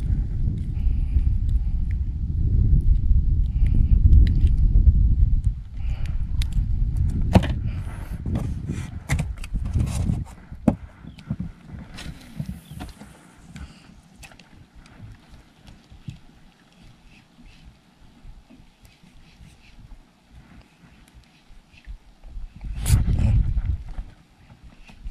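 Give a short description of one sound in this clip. Wind buffets the microphone outdoors on open water.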